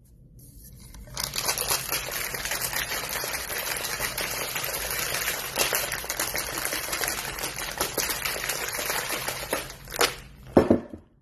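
Ice rattles hard inside a shaker that is shaken fast.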